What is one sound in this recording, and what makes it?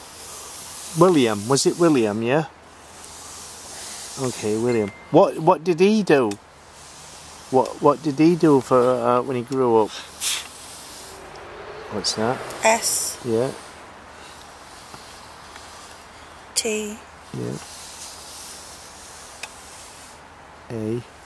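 A woman speaks slowly and drawn out, close by.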